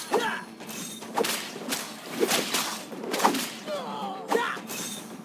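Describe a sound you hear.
Swords clash and slash in quick, sharp strikes.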